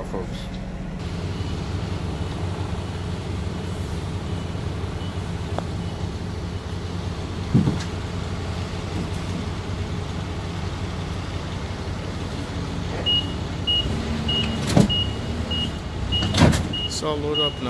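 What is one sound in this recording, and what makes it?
A forklift engine hums and rumbles nearby.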